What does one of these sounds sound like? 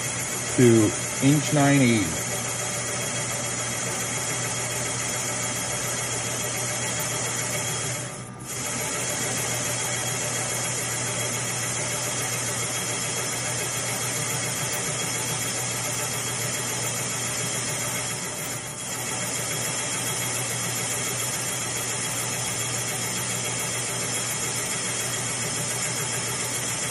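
A milling machine cutter whirs steadily as it cuts into metal.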